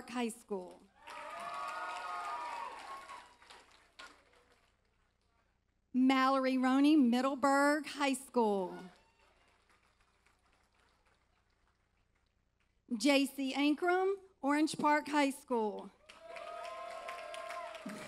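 An audience cheers and applauds in a large hall.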